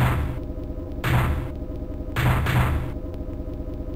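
Heavy metallic blows clang and crash in a robot fight.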